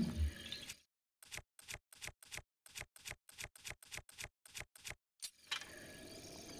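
Quick menu clicks tick in a rapid series.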